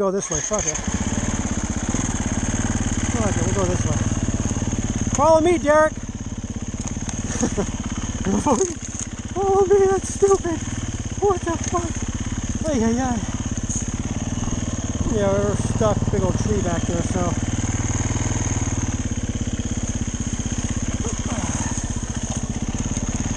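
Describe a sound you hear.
A dirt bike engine rumbles and putters close by.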